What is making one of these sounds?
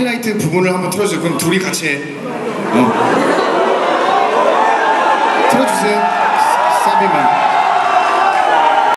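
Loud pop music plays through loudspeakers in a large hall.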